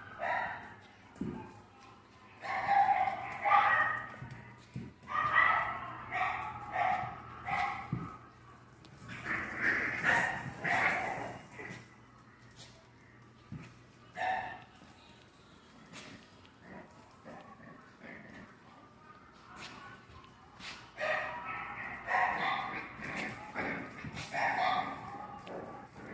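Small paws patter and scrape on a wooden floor.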